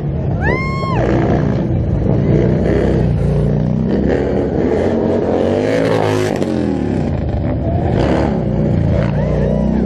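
A motorcycle engine revs loudly and roars nearby.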